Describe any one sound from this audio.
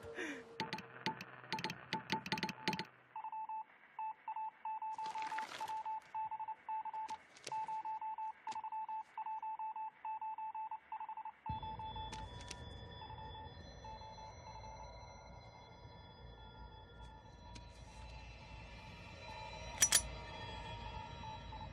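Morse code beeps sound in quick, even bursts.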